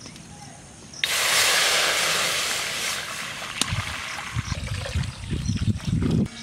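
Water pours and splashes into a metal pan.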